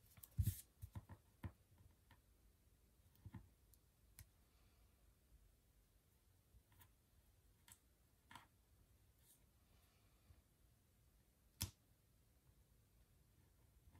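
A pen writes on paper.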